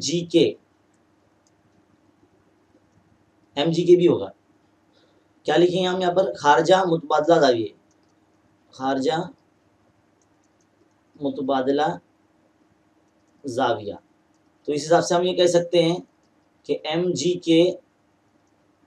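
A young man speaks calmly and clearly into a close microphone, in short phrases with pauses.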